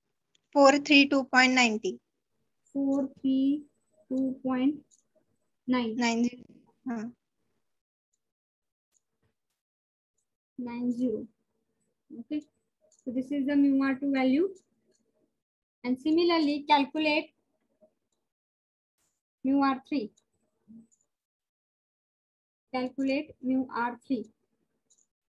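A woman speaks calmly close by, in short phrases with pauses.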